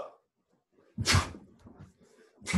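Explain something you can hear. A martial arts uniform snaps sharply.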